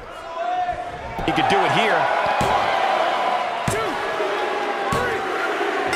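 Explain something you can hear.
A hand slaps the mat three times.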